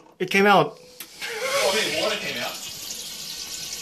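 A toilet flushes with rushing water.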